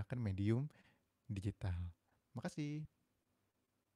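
A young man speaks through a webcam microphone in a few short phrases.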